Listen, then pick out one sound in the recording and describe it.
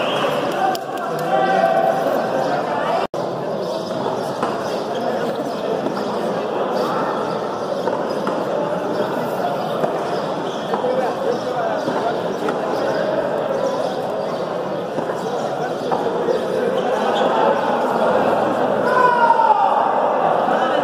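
A handball smacks against a concrete wall in a large echoing court.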